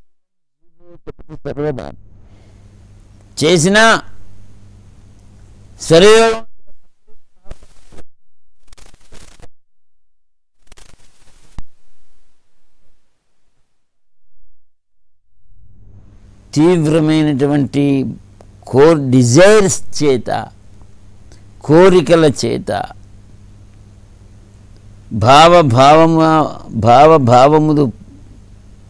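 An elderly man sings slowly in long held phrases, close to a microphone.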